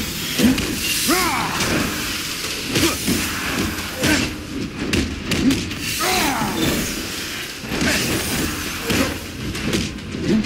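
Heavy blows and slashes land again and again in a fast fight.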